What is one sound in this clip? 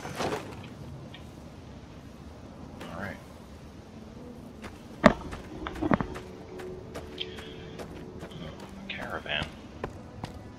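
Footsteps crunch on dry dirt and gravel.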